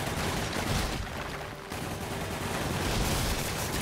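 Debris crashes and scatters loudly.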